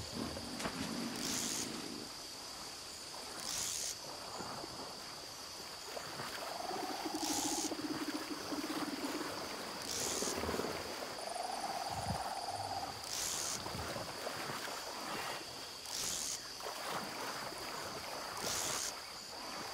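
A fishing reel clicks as line is wound in.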